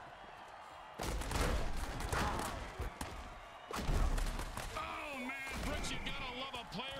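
Armoured players crash together with heavy thuds.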